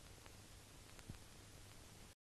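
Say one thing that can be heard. A match strikes and flares.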